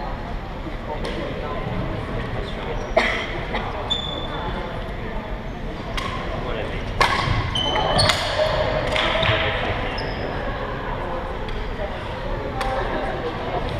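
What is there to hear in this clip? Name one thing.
Shuttlecocks are struck with rackets in a large echoing hall.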